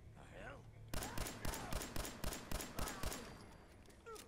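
A pistol fires a rapid burst of loud shots.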